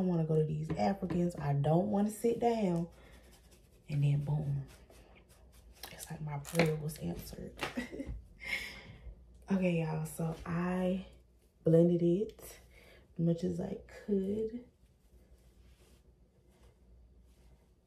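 Hair rustles softly in a young woman's hands.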